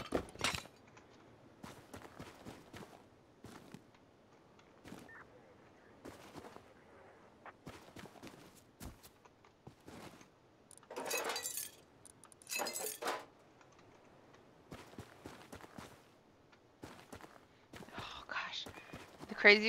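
Footsteps crunch on sandy ground.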